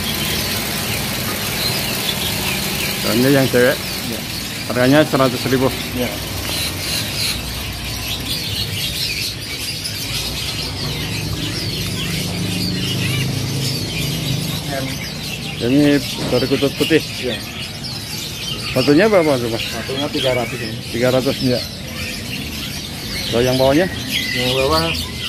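Many small birds chirp and twitter nearby.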